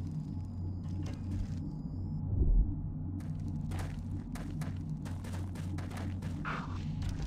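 A man talks quietly into a headset microphone.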